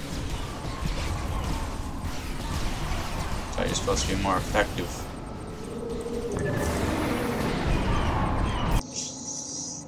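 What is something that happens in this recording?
Game sound effects crackle and whoosh over a low rumble.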